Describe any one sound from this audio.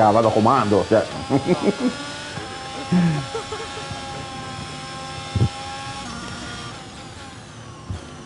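A racing car engine whines at high revs and shifts gears.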